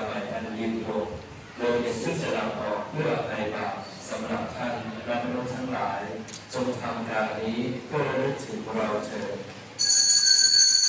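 A congregation sings together in an echoing hall.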